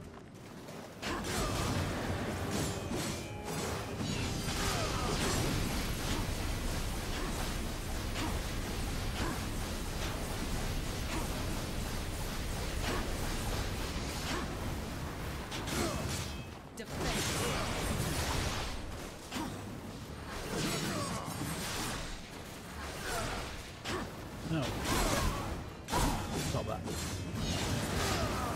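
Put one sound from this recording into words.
Loud explosions boom and crackle with fire.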